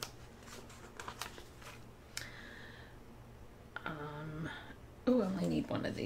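A sticker peels off a backing sheet.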